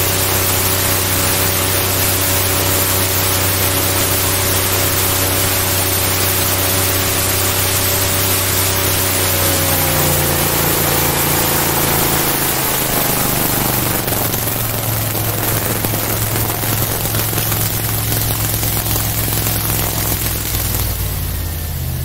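Water rushes and splashes behind a speeding boat.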